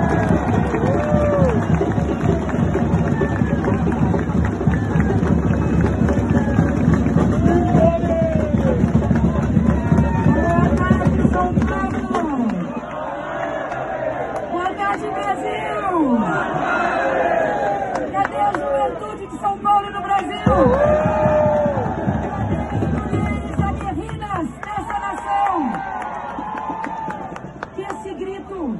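A woman speaks forcefully into a microphone, loud over loudspeakers outdoors.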